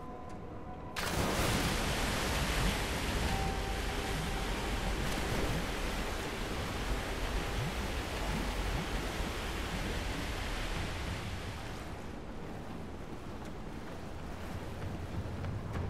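Rushing water roars steadily.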